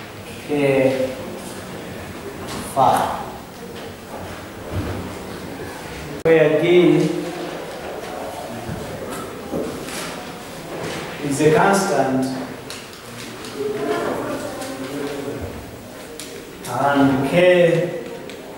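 A man speaks calmly in a slightly echoing room.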